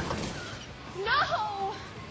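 A man shouts outdoors.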